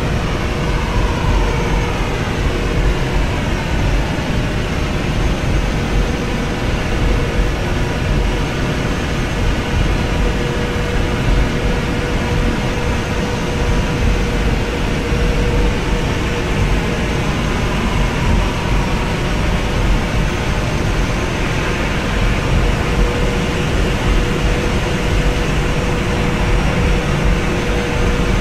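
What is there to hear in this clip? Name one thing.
Tyres rumble on the runway.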